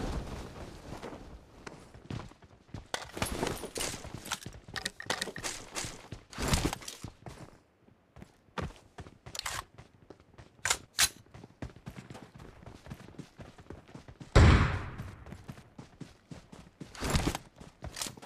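Footsteps thud quickly on wood and ground.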